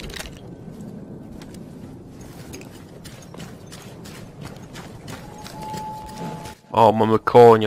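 Footsteps crunch on gravel at a steady pace.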